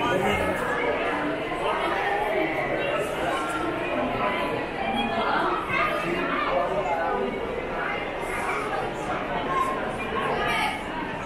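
A crowd of visitors chatters in a large echoing hall.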